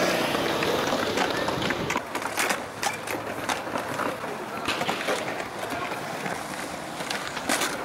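A skateboard's tail clacks sharply against concrete.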